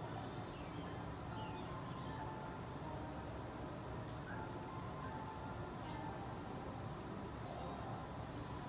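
Cheerful video game music plays from a television speaker.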